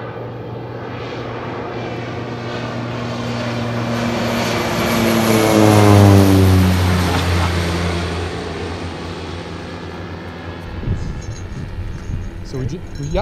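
A propeller plane's engine drones overhead, growing louder as it passes close and then fading into the distance.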